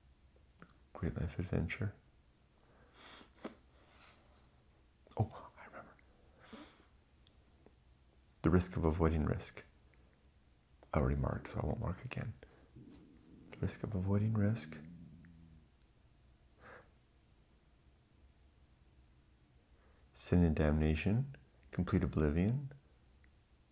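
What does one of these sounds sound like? A middle-aged man talks calmly and close to a microphone, in short bursts.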